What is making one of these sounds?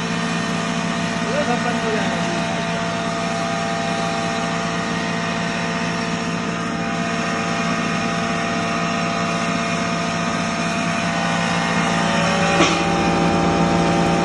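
Grain rattles and grinds inside a mill.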